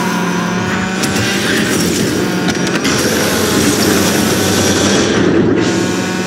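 A toy race car's engine whines steadily at speed.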